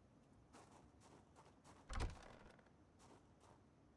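A wooden door opens with a thud.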